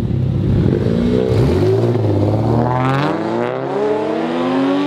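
A car engine revs up, rising in pitch.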